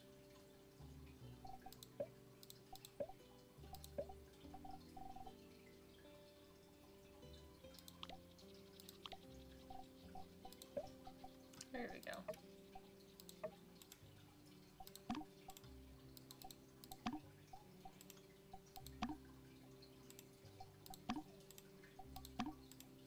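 Short soft clicks sound again and again.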